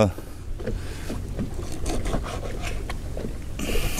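A knife slices through fish on a cutting board.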